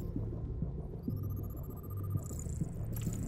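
A thin electronic tone glides upward in pitch.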